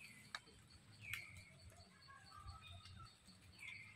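A monkey makes soft grunting calls close by.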